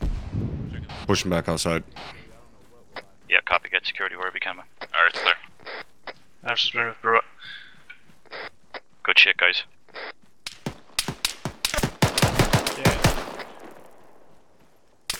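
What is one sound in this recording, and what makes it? Footsteps crunch quickly over gravel and dirt.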